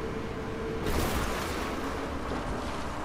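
A boat engine roars.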